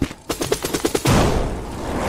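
Crystals shatter with a bright crash.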